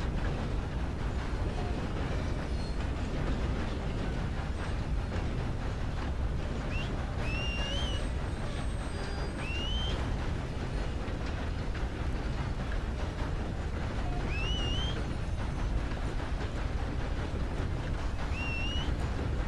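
A steam train rumbles and clatters along the tracks.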